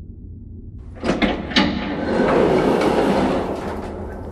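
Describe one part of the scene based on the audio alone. Heavy sliding doors rumble open with a whoosh.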